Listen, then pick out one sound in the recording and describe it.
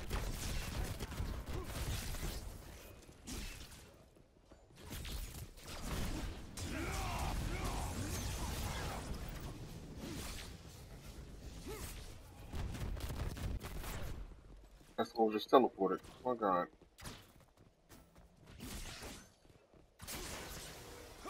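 Magic blasts crackle and boom during a fight.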